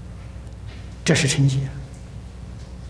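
An elderly man speaks calmly into a microphone, with short pauses.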